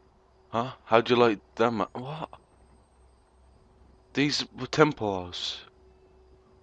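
A man speaks in a low, tense voice, in short phrases.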